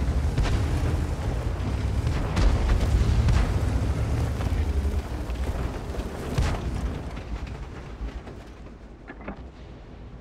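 A tank engine rumbles deeply and gradually fades.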